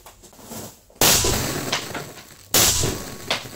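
A rifle fires a loud shot that echoes off the walls.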